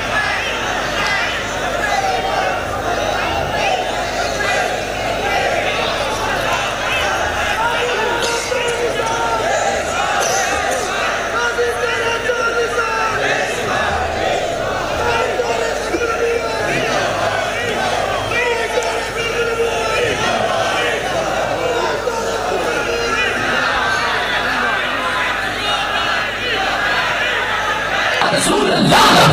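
A man speaks with animation into a microphone, heard through loudspeakers in a large echoing space.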